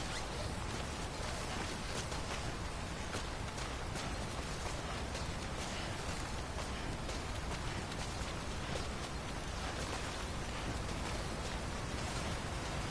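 Boots scuff against rock as a climber rappels down a cliff.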